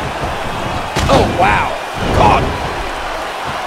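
A body slams hard onto a wrestling mat with a heavy thud.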